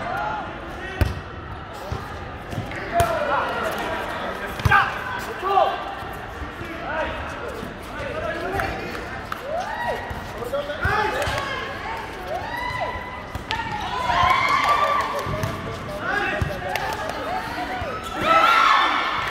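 A volleyball is struck with a slap of hands.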